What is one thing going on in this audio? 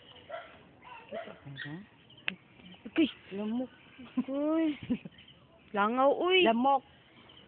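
A woman sings and coos to a baby close by, in short rising and falling phrases.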